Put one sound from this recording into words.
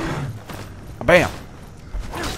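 A heavy blow thuds against a wooden shield.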